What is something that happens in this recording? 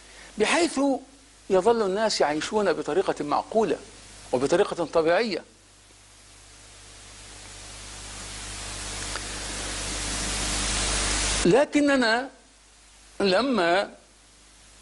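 A middle-aged man speaks calmly and with emphasis into a close microphone, pausing often.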